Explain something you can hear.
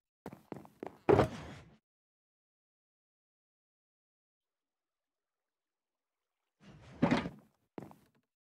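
A box lid opens and later shuts with a soft clunk.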